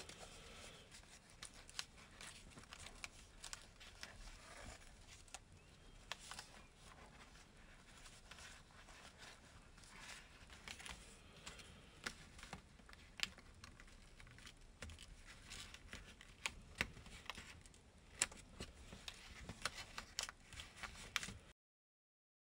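Paper crinkles and rustles as it is folded by hand, close up.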